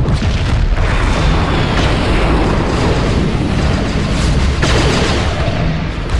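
A large explosion booms.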